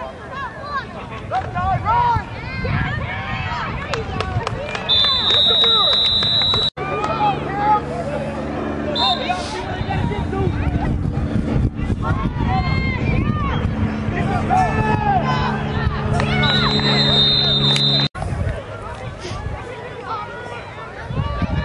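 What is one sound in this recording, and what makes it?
A crowd of spectators nearby cheers and shouts outdoors.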